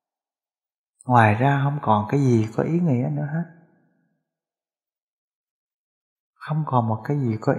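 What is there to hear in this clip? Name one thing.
A middle-aged man speaks calmly and slowly into a close microphone.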